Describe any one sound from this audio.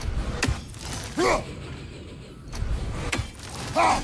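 A thrown axe whooshes through the air.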